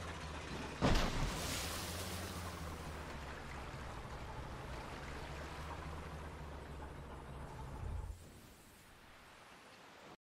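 Waves churn and rush around rocks.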